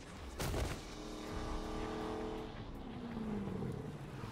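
A sports car engine revs loudly.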